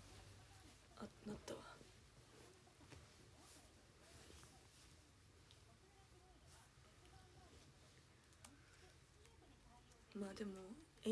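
A young woman talks quietly up close.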